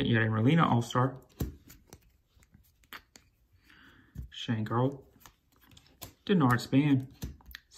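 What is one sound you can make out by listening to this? Trading cards rustle and slide against each other in hands.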